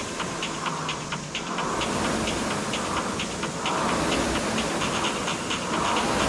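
A rowing machine's flywheel whirs and whooshes with each steady stroke.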